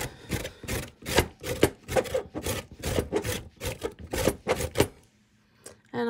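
A carrot is grated quickly against a metal grater with rapid rasping strokes.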